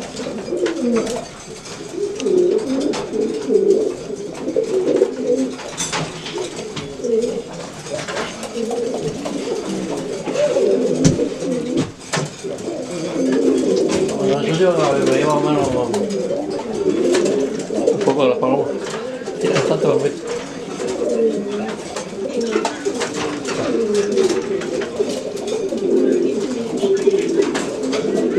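Many pigeons coo and burble steadily close by.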